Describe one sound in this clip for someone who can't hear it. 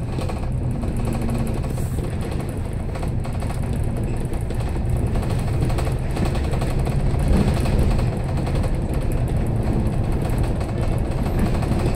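A tram rumbles and rattles steadily along its tracks.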